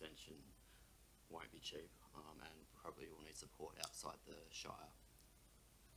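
A man speaks calmly into a microphone in a quiet room.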